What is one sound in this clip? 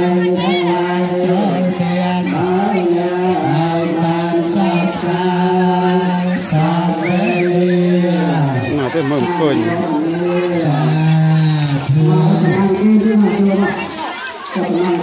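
A group of young men chants together in unison, close by.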